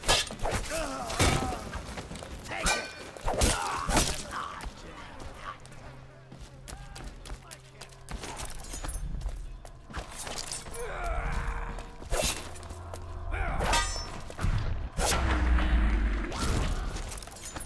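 A sword slashes and strikes with sharp metallic clangs.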